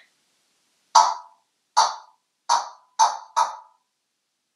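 A parrot gives a series of short, sharp squawks.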